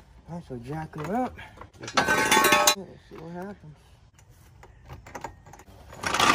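A floor jack creaks and clanks as its handle is pumped.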